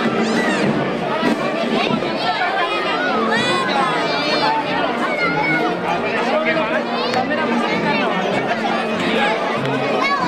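A crowd of children chatter and shout excitedly all around.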